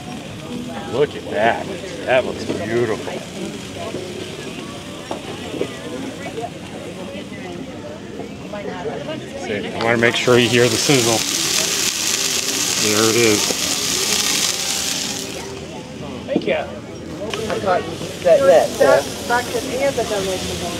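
Men and women chat in a crowd outdoors.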